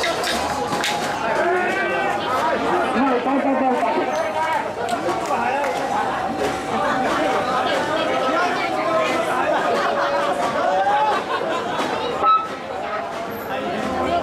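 Men shout and chant up close.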